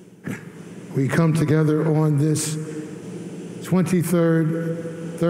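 A man speaks through a microphone in an echoing hall.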